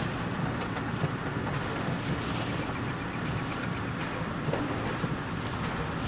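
Tyres rattle and bump over a rough dirt track.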